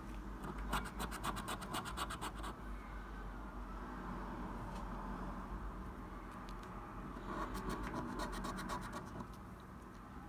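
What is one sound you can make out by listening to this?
A coin scratches quickly across a scratch card.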